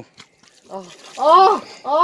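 Water pours and splashes onto a surface.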